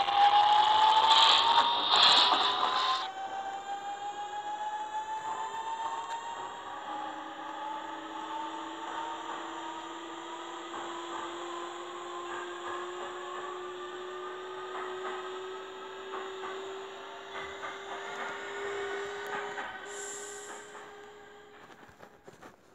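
An electric train's motor whines, rising in pitch as it speeds up.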